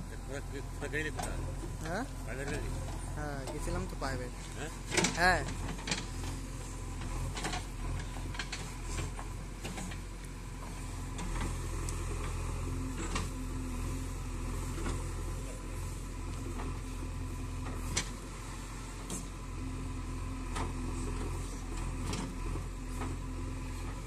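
Metal parts of a backhoe clank and knock.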